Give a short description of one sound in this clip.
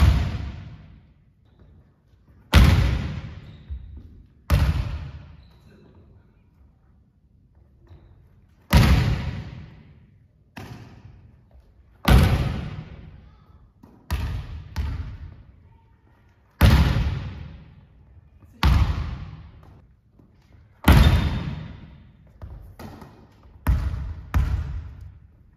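A volleyball is hit hard and smacks loudly, echoing through a large hall.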